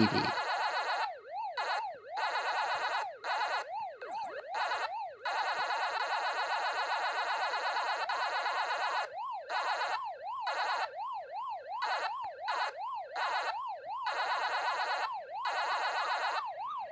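An electronic siren wails up and down steadily.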